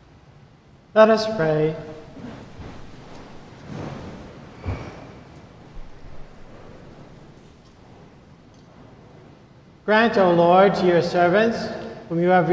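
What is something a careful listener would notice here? An elderly man chants slowly through a microphone in a large echoing hall.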